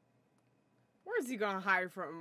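A young woman speaks briefly close to a microphone.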